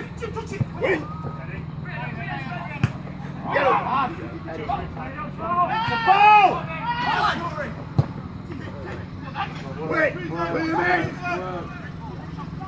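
Players shout to each other across a football pitch outdoors.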